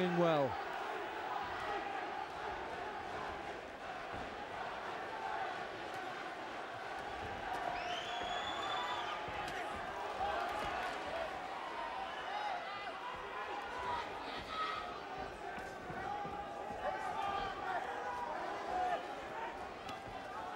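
Boxing gloves thud as punches land on a body.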